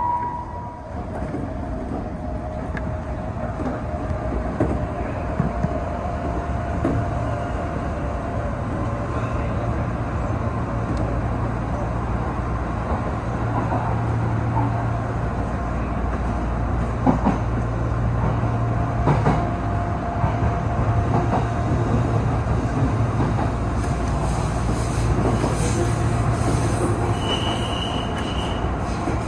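Train wheels clatter and knock over rail joints.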